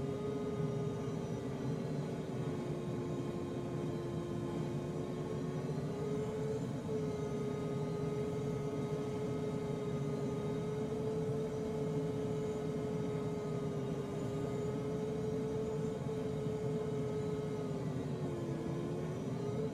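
A glider's variometer hums a steady tone that slowly rises and falls in pitch.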